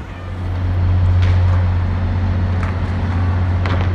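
Bicycle tyres roll on concrete.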